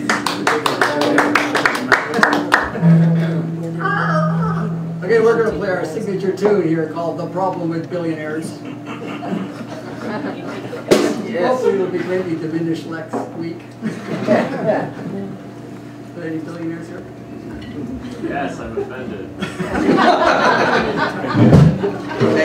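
A jazz band plays live.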